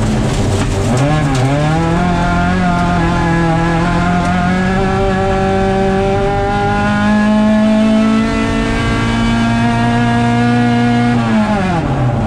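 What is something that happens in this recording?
A rally car engine roars loudly from inside the cabin, its pitch rising and holding high before dropping.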